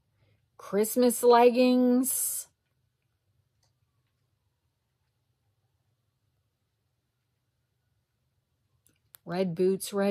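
A woman speaks softly and slowly close to a microphone.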